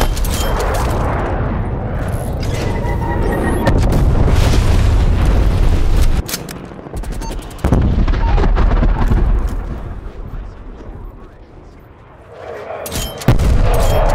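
Rapid gunshots fire in bursts.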